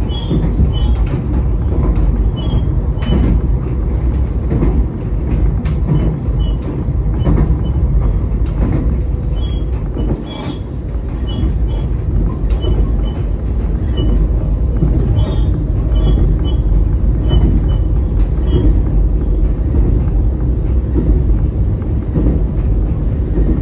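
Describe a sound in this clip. A train's engine rumbles steadily from inside the cab.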